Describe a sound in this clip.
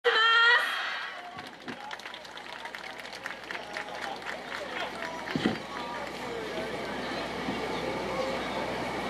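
Dancers stamp and clap in rhythm outdoors.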